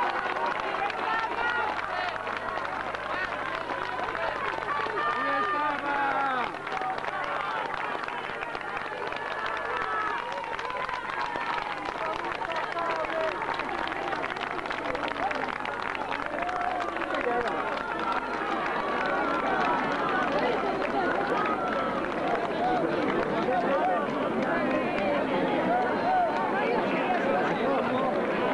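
A large outdoor crowd cheers and chatters excitedly.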